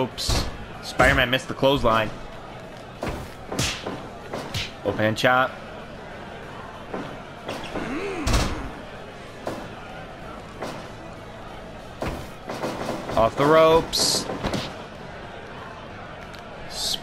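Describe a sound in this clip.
Blows and body slams land with sharp, punchy thuds.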